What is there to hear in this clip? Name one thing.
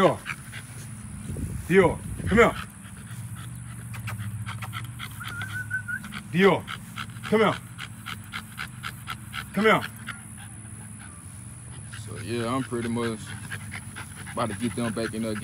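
A dog pants quickly and steadily close by.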